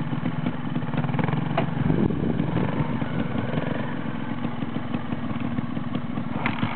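A motorcycle engine revs up as the bike pulls away over gravel.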